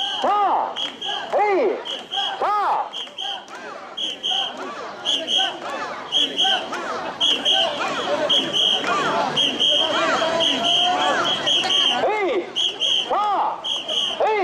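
A crowd of men chants loudly in rhythm, outdoors.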